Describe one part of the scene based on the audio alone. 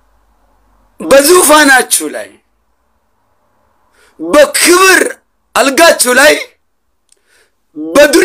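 A young man speaks close to the microphone in short, animated bursts.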